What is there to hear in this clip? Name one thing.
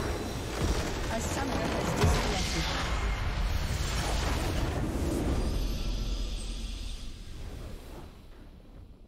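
Game spell effects crackle and boom in a loud fight.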